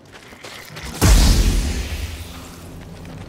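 A lightsaber ignites with a loud, buzzing hum.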